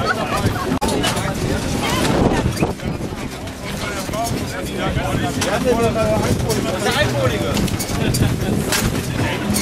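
Metal tools clink and rattle.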